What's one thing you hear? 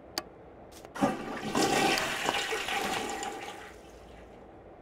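A toilet flushes with a rushing gush of water.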